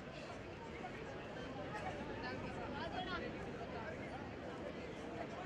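A large crowd cheers and chatters noisily outdoors.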